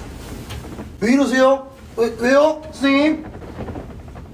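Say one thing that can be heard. A young man asks questions in a puzzled voice nearby.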